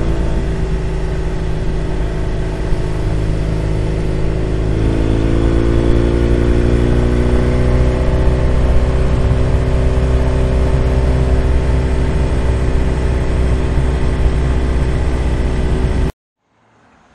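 A motorcycle engine rumbles steadily while riding, rising in pitch as it speeds up.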